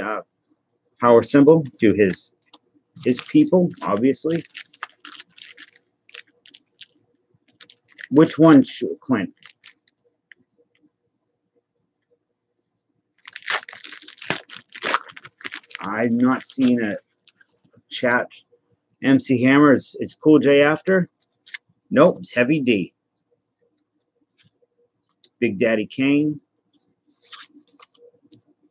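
Trading cards rustle and flick between fingers.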